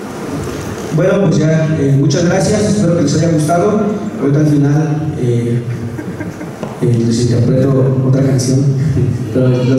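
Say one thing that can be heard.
A man speaks with animation through a microphone in a large echoing hall.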